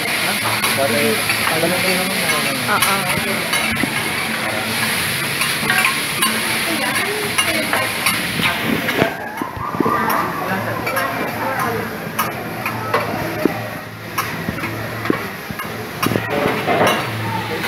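Metal spatulas scrape and clink against a griddle.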